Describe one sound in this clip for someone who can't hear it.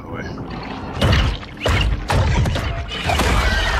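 A creature's attack hits with sharp crunching thuds.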